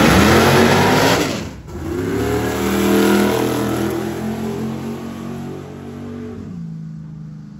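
A race car accelerates hard and roars away, its engine rising in pitch.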